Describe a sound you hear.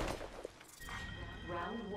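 A heavy axe swings through the air with a whoosh.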